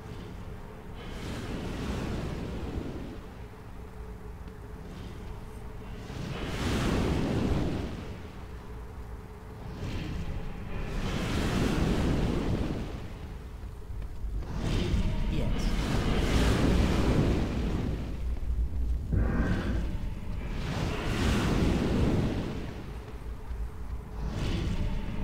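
Flames roar in loud, rushing swells.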